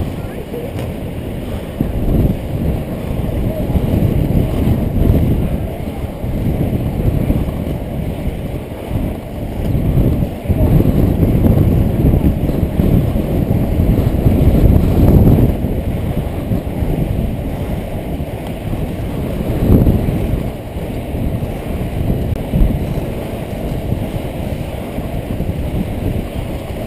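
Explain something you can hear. Wind buffets past a helmet-mounted microphone.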